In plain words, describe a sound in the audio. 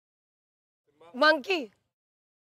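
A young woman shouts sharply once.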